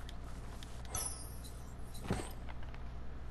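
A bright magical chime rings out as an item is picked up.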